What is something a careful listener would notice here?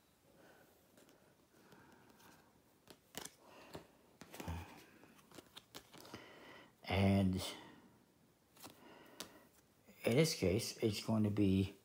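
Playing cards are laid down with soft slaps.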